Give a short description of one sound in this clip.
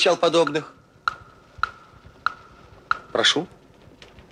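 High heels click on pavement at a steady walking pace.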